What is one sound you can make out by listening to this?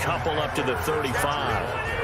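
Football players thud together in a tackle.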